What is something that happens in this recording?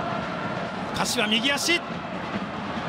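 A young man shouts out on the pitch.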